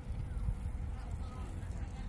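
A bicycle rolls past on a paved path.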